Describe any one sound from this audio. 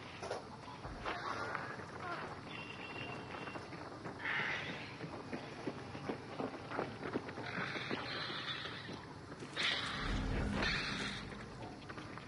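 Footsteps crunch over gravel and then thud on wooden planks.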